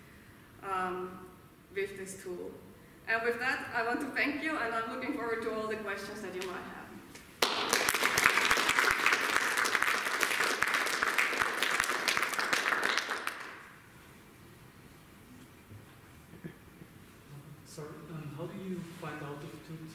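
A young woman speaks calmly through a microphone in an echoing hall.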